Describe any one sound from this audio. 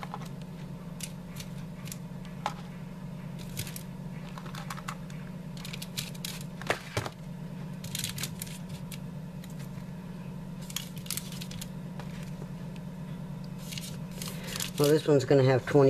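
Aluminium foil crinkles and rustles softly under handling.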